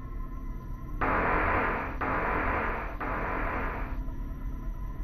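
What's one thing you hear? A heavy gun fires in three long, roaring bursts.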